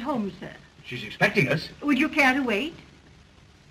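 A woman asks a question politely.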